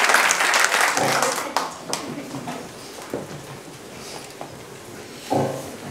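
A large choir sings.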